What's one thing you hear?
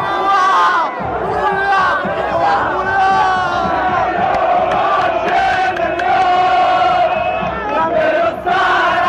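A crowd of young men sings a chant loudly and close by, outdoors.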